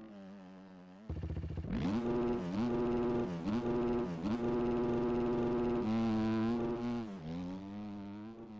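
A motocross bike engine idles, then revs hard and loud as the bike launches away.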